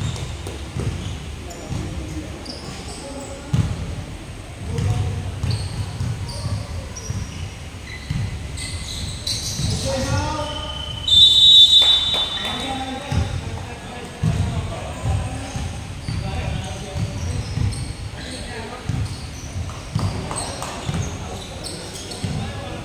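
Young people shout and call out across the echoing hall.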